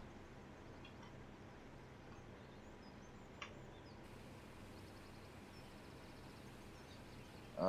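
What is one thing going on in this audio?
A combine harvester engine hums steadily.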